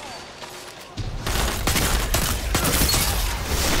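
A rocket explodes with a loud boom.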